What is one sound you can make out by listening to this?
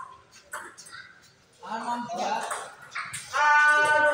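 A table tennis ball clicks off paddles and a table in a rally.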